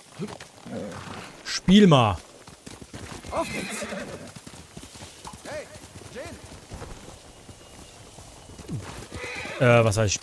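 A horse gallops with drumming hoofbeats.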